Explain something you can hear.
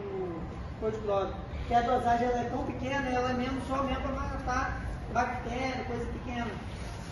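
A man speaks clearly and loudly to a group.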